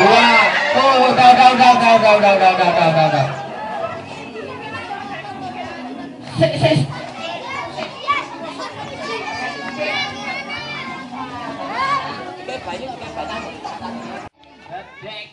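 Children shout and chatter outdoors.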